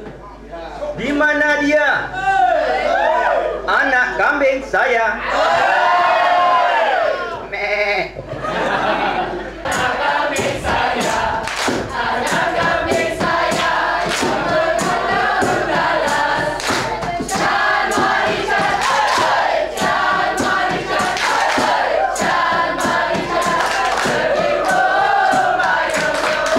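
A group of young people sings together in a large echoing hall.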